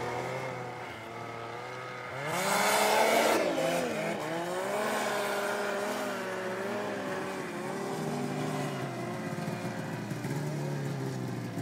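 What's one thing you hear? A snowmobile engine drones steadily in the distance as it climbs a slope.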